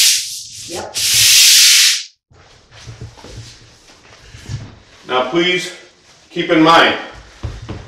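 A mop swishes on a tiled floor.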